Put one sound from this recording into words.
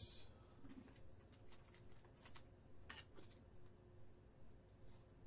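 Plastic card sleeves rustle and slide as cards are handled.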